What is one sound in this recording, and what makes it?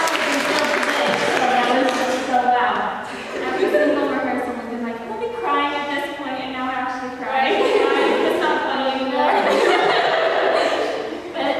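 A group of young women sings together in close harmony, echoing in a large hall.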